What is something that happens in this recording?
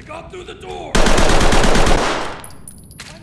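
A rifle fires a rapid, loud burst of shots up close.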